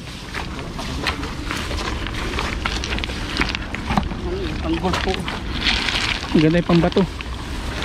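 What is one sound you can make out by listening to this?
Leaves and stalks rustle as a man pushes through dense plants.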